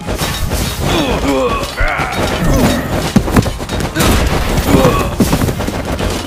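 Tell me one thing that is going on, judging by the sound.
Weapons clash in a busy battle.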